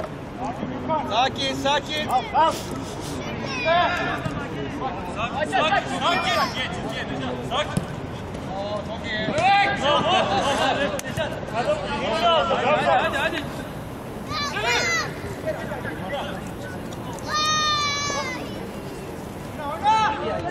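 Men shout and call out to each other outdoors, some nearby and some far off.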